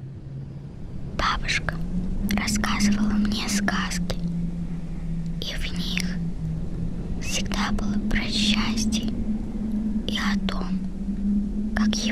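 Wind gusts across open ice, blowing snow along.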